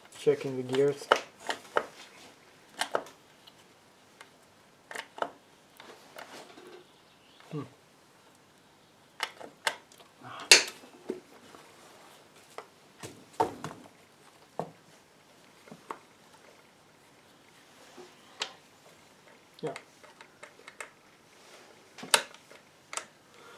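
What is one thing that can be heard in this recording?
Metal parts of an aluminium engine casing clink and knock as they are handled.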